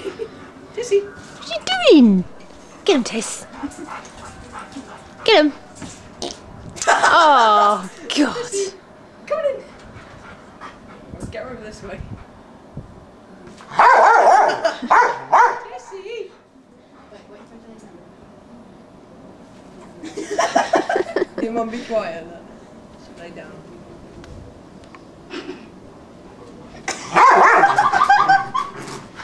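A large dog barks and growls excitedly.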